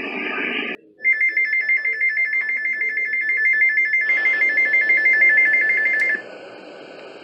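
A shrill, steady alert tone blares from a small radio speaker.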